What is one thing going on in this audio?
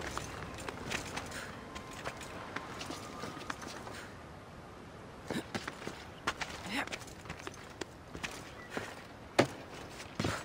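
A game character's hands grip and scrape on stone while climbing.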